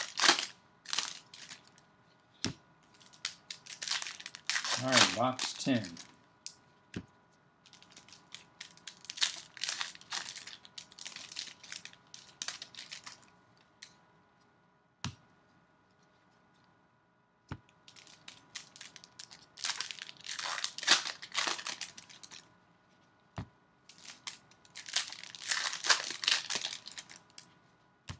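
Paper wrappers crinkle and rustle as they are torn open.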